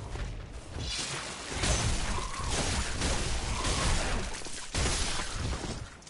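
A heavy weapon swings and strikes flesh with thuds.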